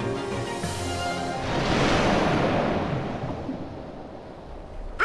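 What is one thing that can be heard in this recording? Water splashes up loudly and the spray hisses away.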